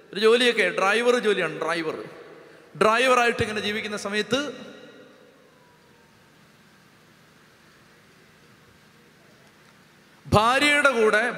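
A man speaks with animation through a microphone, with pauses between his phrases.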